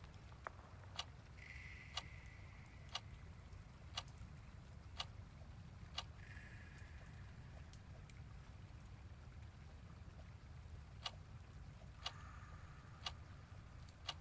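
A countdown ticks with sharp clicks, one each second.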